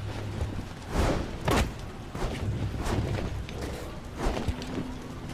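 Heavy thumps land one after another.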